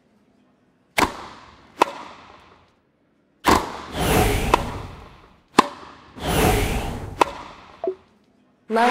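A tennis ball is struck with sharp pops of a racket.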